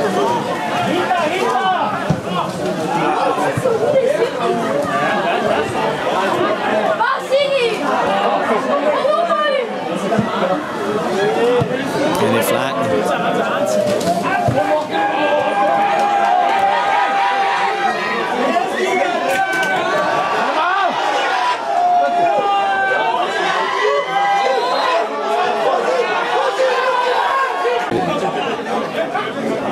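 A crowd of spectators chatters and shouts nearby, outdoors.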